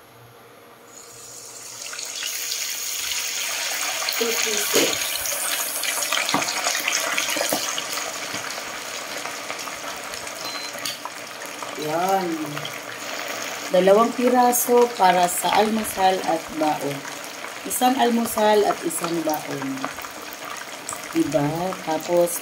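Hot oil sizzles and crackles loudly as food is dropped in to fry.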